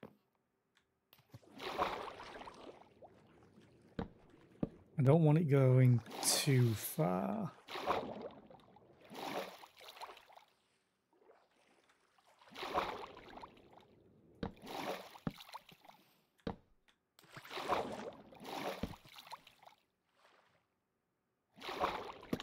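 Water splashes softly as a swimmer paddles through it.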